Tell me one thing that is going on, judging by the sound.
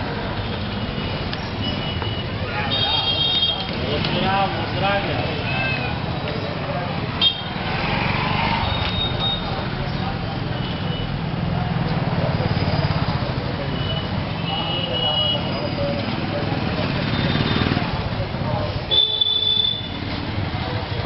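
Horns honk now and then.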